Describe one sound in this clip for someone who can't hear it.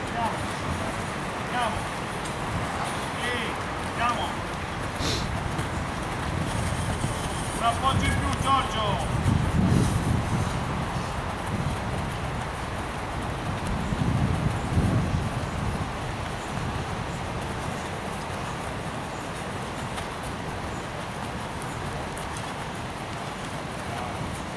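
Young men run with quick footsteps on packed dirt.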